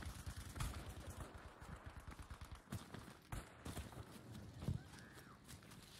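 Quick footsteps run over sandy ground.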